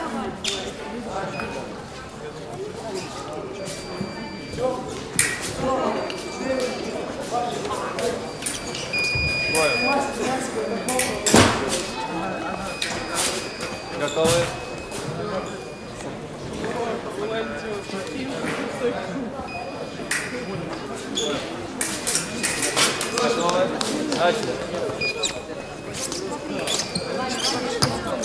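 Many people talk in a large echoing hall.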